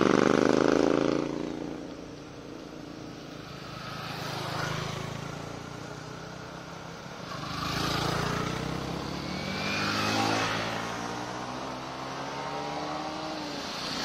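Motorcycle engines roar as riders pass by one after another.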